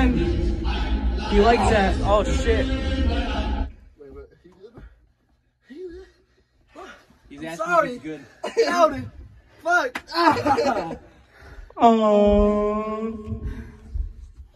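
A young man groans and cries out in pain.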